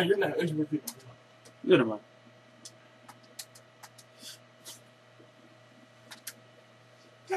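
Short electronic menu blips sound now and then.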